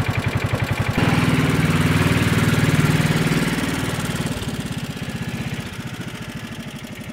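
A utility vehicle drives away, its engine growing louder and then fading into the distance.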